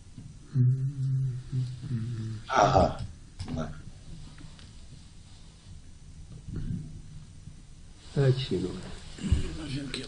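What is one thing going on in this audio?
An elderly man speaks calmly into a microphone, heard through an online call.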